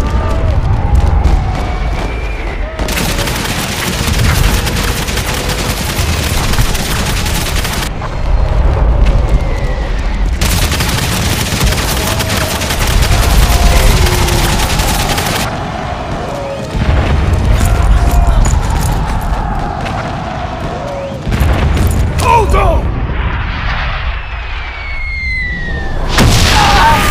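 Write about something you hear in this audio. Shells explode with deep booms.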